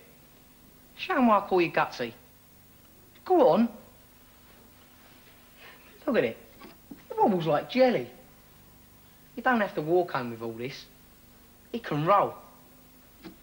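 A young boy answers back, nearby.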